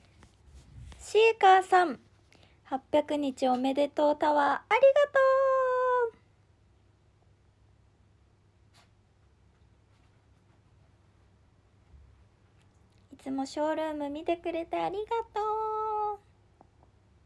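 A young woman speaks close to a phone microphone in a soft, drawn-out, sing-song voice.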